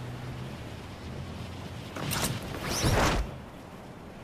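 Wind rushes past during a fast fall through the air.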